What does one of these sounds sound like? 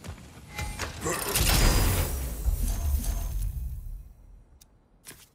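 A heavy chest creaks open with a swelling magical whoosh.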